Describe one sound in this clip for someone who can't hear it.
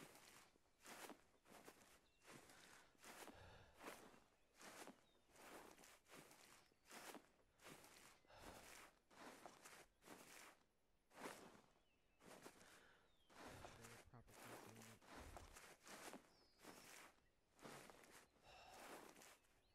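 Footsteps rustle rhythmically through dry grass and ferns.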